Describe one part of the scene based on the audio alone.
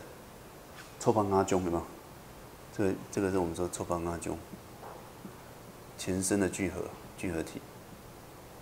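A middle-aged man speaks calmly into a handheld microphone, heard through a loudspeaker.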